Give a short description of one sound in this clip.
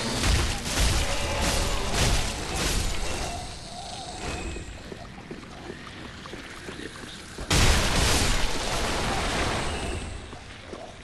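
Heavy weapon blows strike and clang in a fight.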